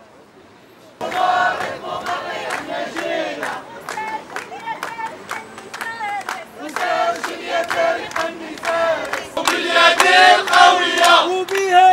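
A crowd claps hands in rhythm.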